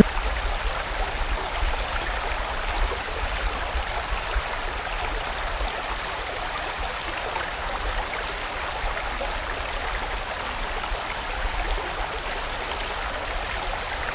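A fast stream rushes and splashes over rocks.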